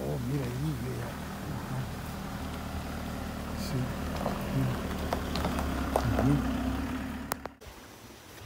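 Tyres crunch on gravel.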